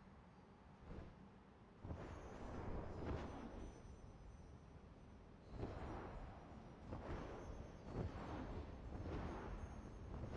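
Sand hisses as a figure slides down a dune.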